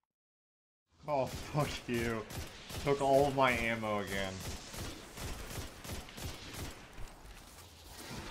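Rapid gunshots crack and pop.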